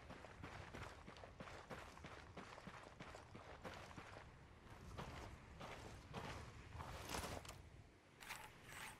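Footsteps crunch steadily on hard, dry ground.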